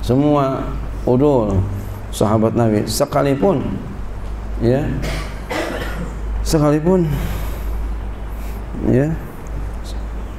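A middle-aged man speaks calmly and with pauses into a microphone.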